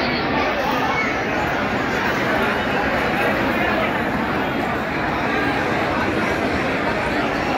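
A large crowd chatters outdoors in a steady murmur.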